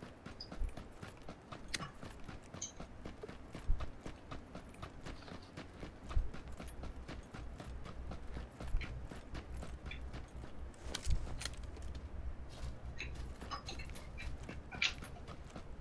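Footsteps thud quickly on grass as someone runs outdoors.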